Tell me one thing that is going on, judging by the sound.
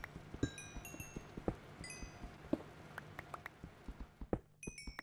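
A pickaxe chips at stone in quick, repeated knocks.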